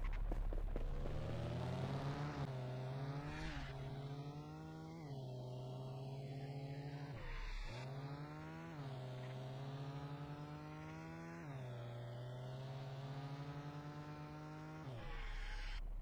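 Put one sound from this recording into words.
A car engine revs up and climbs through the gears, dropping in pitch at each gear change.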